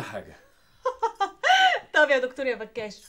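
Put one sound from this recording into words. A woman laughs heartily close by.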